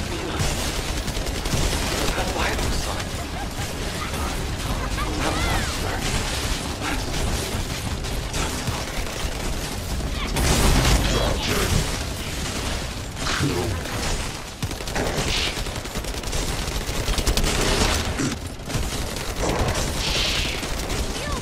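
Loud blasts boom as attacks hit.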